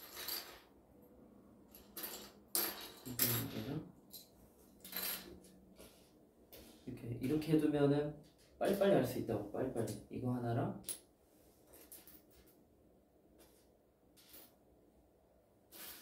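Small craft pieces clatter and tap on a table.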